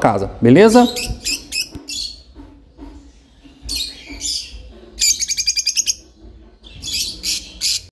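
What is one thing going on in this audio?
Lovebirds chirp and squawk in short, shrill bursts close by.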